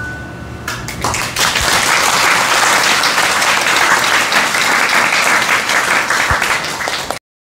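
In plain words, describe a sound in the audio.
An audience applauds loudly in a large room.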